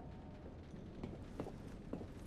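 Footsteps tread on a metal walkway.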